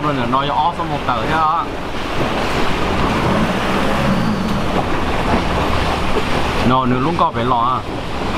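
A middle-aged man talks close to a microphone.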